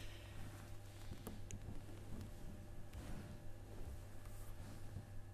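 A middle-aged man speaks quietly into a microphone.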